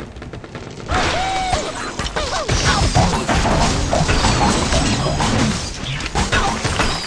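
Wooden and stone blocks crash and clatter as a structure collapses.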